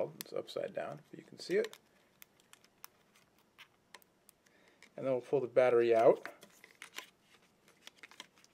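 Plastic clicks and snaps as a phone's back cover is pried off and handled.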